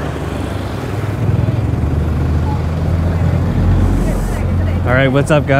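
A motorbike engine rumbles past close by.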